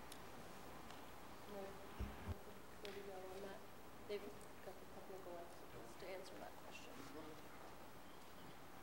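A young woman speaks quietly into a microphone in a large room.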